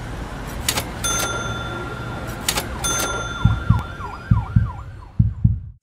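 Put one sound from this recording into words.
A small bell chimes with a ringing tone.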